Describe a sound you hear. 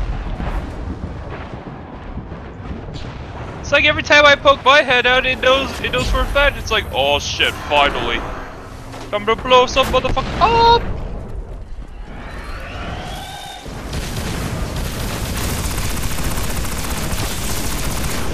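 Gunshots fire in quick bursts.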